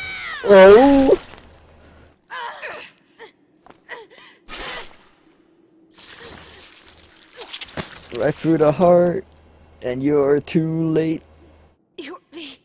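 A young woman cries out in pain.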